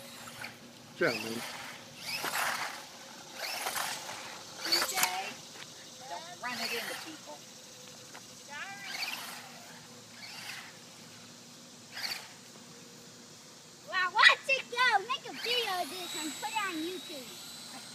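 A small toy car's electric motor whirs in short bursts as the car drives over pavement.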